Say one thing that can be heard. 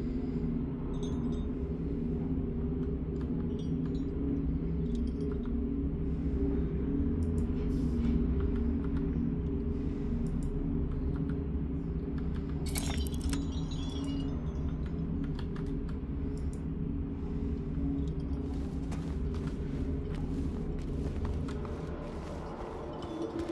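Low, steady game music drones from small speakers.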